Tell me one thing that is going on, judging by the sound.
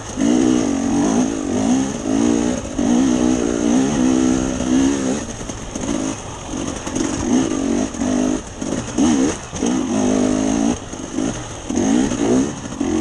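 Tyres crunch over stones and dirt.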